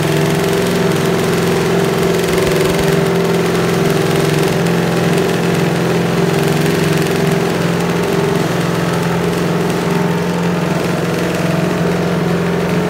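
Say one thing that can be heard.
A racing motorcycle engine idles loudly with a rough, throbbing roar.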